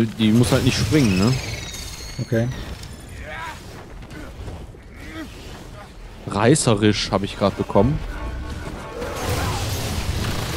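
An energy weapon fires with a crackling hiss.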